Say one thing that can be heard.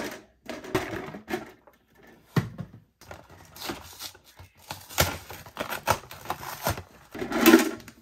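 A cardboard box crinkles and rustles in a hand.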